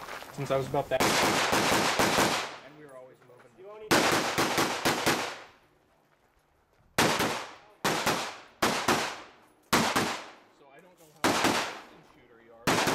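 Pistol shots ring out one at a time, echoing outdoors.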